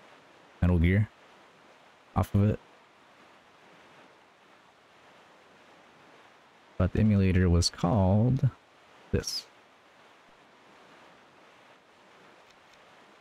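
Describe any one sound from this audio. Waves splash softly against a small sailing boat.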